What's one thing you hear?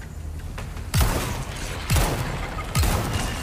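A pistol fires several loud shots that echo.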